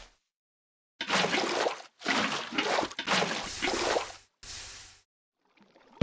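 Water splashes out of a bucket.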